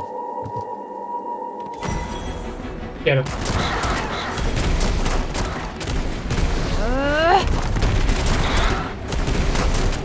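A man talks through a headset microphone.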